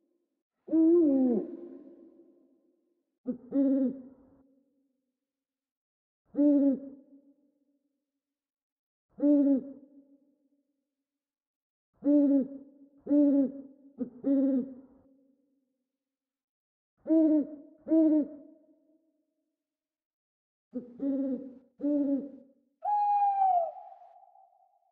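An owl hoots in short, repeated calls, close by.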